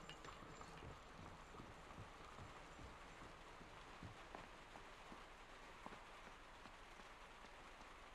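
Footsteps thud softly on a wooden roof.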